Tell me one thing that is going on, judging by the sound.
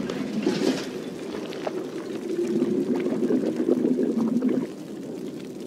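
Water bubbles in a pot.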